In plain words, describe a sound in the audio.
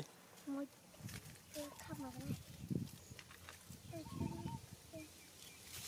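A young macaque rustles and climbs through leafy branches.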